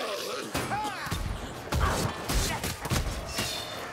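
A sword slashes and strikes with heavy thuds.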